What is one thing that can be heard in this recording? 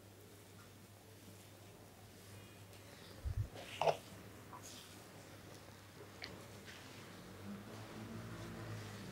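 Hands rub and rustle through hair close by.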